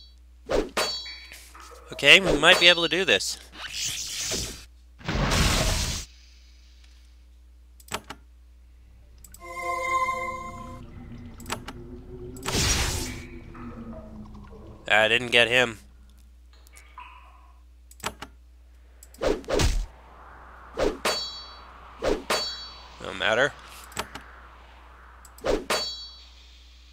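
Weapons clash and strike repeatedly in a fight.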